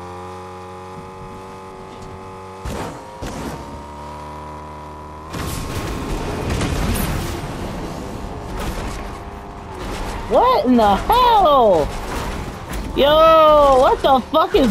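A car engine hums steadily and revs.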